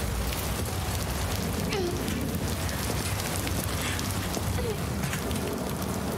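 Footsteps splash on wet ground.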